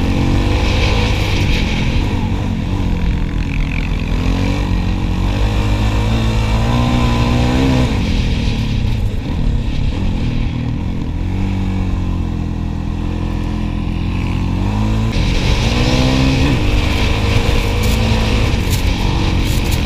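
A quad bike engine roars up close, revving up and down as it climbs.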